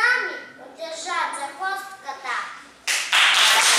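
A young girl sings in a small, clear voice.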